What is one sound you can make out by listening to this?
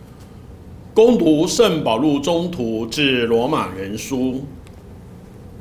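A man reads out through a microphone in a reverberant hall.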